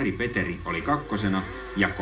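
A snowmobile engine revs and spins its track in the snow.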